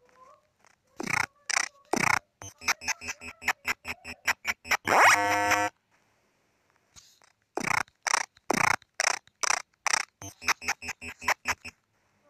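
Electronic blips and shots sound in quick bursts.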